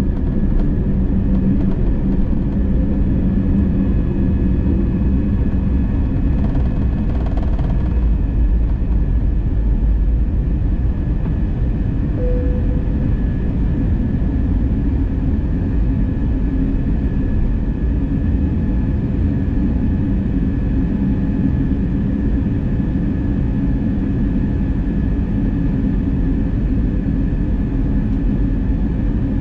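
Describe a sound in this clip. Jet engines roar loudly and steadily inside an airplane cabin.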